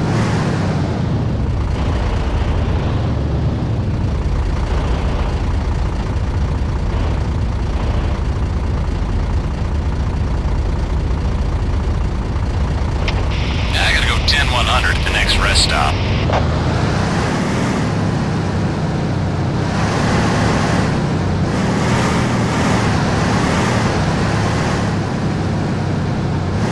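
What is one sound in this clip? A truck's diesel engine rumbles steadily.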